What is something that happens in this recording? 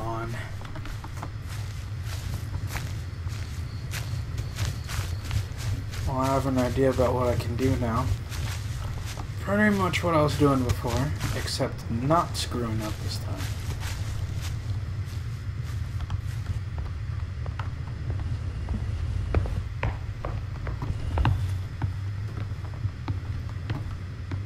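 Footsteps patter quickly on wooden boards.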